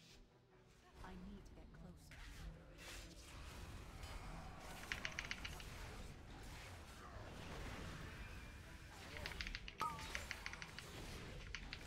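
Magic spells crackle and blast in a busy fight.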